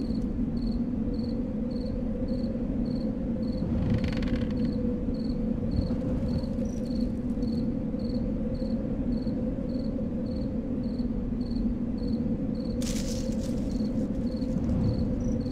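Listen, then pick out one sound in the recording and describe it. A torch fire crackles steadily.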